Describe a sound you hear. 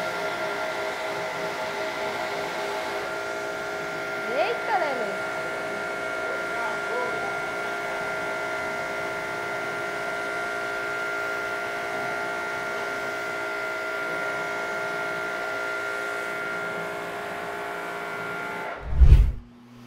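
Water sprays hard against a tyre.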